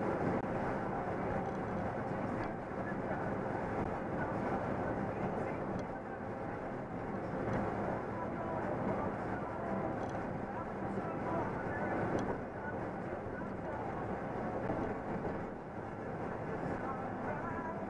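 A vehicle's engine hums steadily from inside the cab.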